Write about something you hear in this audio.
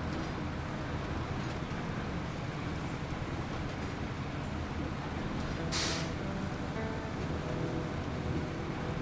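A heavy truck engine rumbles steadily as it drives slowly.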